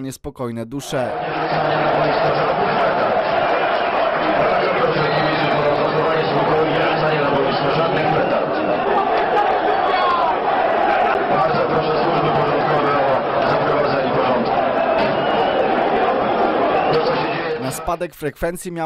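A large crowd roars and chants in an open stadium.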